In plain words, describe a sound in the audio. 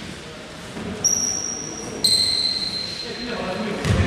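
A referee's whistle blows two short sharp blasts in an echoing gym.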